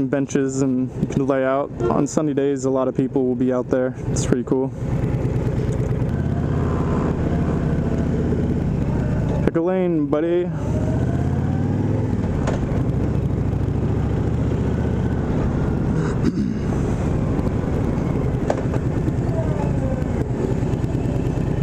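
A motorcycle engine rumbles steadily and revs as the bike rides along a street.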